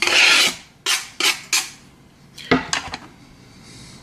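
Chopped vegetables tumble into a plastic bowl.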